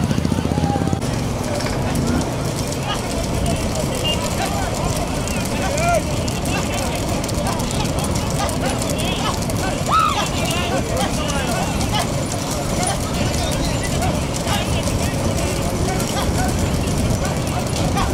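Motorcycle engines rumble close by.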